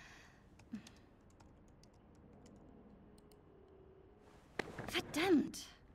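Fingers tap quietly on a keyboard.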